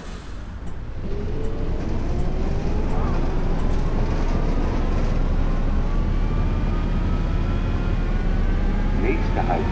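A bus engine revs up steadily, rising in pitch as the bus pulls away.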